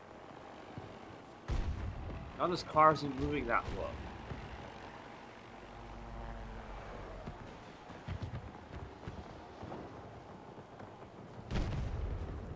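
A pickup truck engine drives in a video game.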